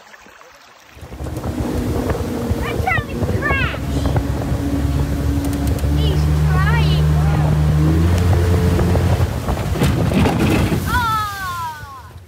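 An outboard motor roars steadily.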